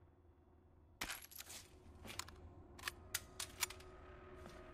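A pistol is reloaded with sharp metallic clicks.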